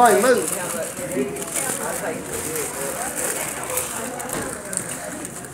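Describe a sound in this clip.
Men and women chat nearby in a crowded room.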